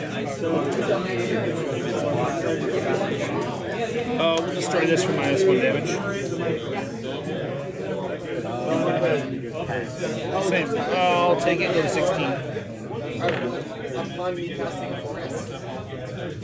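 Playing cards slide and tap softly on a table mat.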